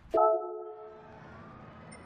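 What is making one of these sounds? A short electronic menu chime rings out and fades.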